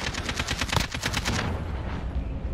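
Rapid automatic gunfire rattles in a video game.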